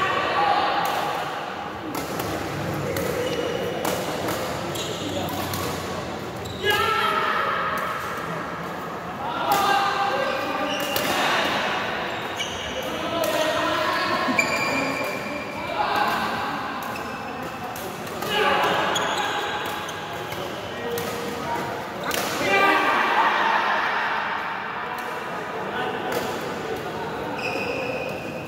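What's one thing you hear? A shuttlecock is struck back and forth with rackets in an echoing hall.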